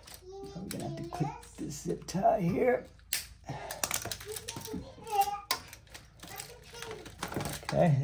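Plastic wire connectors click and rattle as they are handled.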